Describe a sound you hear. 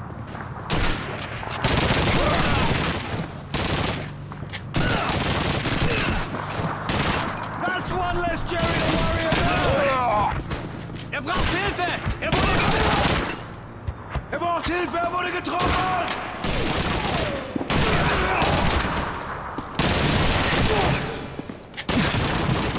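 Rifles fire in rapid, loud bursts.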